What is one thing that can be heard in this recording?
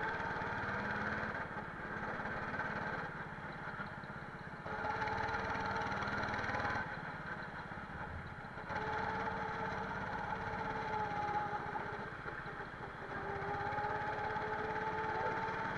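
A go-kart engine buzzes up close, rising and falling in pitch as it speeds up and slows down.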